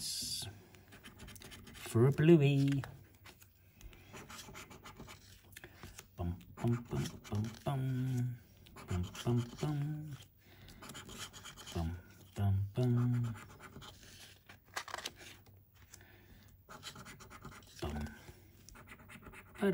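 A coin scratches across a lottery ticket.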